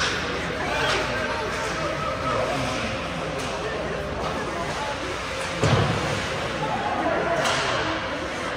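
A hockey puck is struck by a stick with a sharp crack.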